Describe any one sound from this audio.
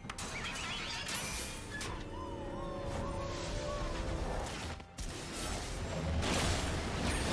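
Game sound effects of blows and spells clash and crackle.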